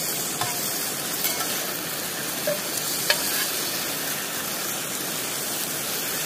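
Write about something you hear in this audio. A metal spatula scrapes a pan.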